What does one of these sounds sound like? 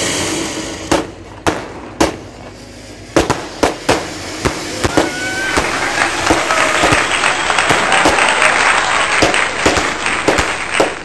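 Firecrackers pop and bang in quick bursts.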